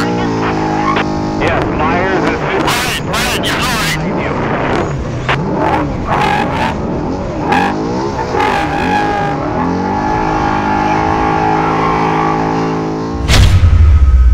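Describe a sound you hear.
An engine revs hard, its pitch rising and falling as gears shift.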